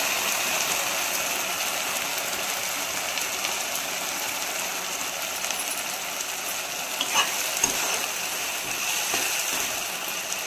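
Food sizzles and bubbles steadily in a pan.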